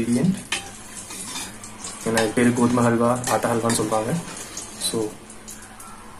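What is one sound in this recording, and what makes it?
A metal ladle clinks against a steel pan.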